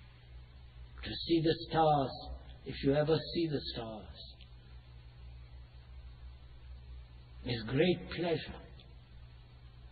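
An elderly man speaks calmly and slowly, in pauses.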